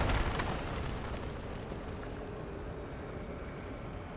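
Stone cracks and crumbles with a heavy rumble.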